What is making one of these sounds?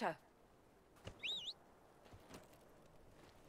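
A horse snorts and whinnies.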